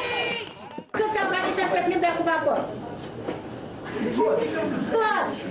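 An older woman speaks calmly to a group.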